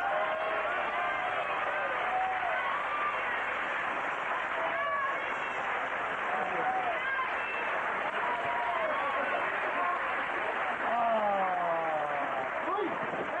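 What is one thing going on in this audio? A large crowd chatters and cheers.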